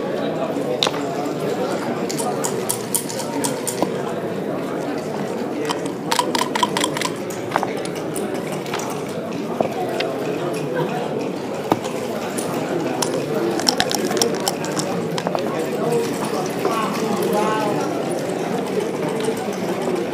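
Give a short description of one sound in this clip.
Plastic checkers click and clack as they are moved on a board.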